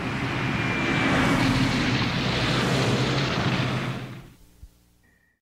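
Rain patters steadily on a car window, then fades away.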